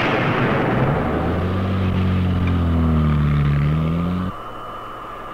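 A loud explosion roars and rumbles, then cuts off.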